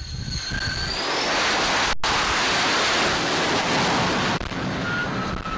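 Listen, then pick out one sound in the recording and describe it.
A jet plane roars past on landing.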